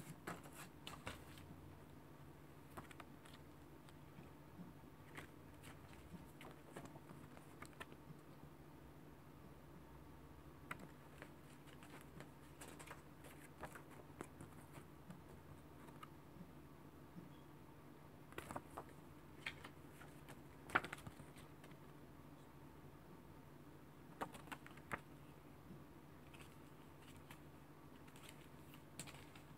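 A plastic case clicks and rattles in someone's hands.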